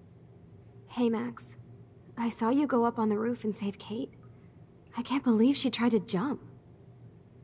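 A young woman speaks in a tense, emotional voice.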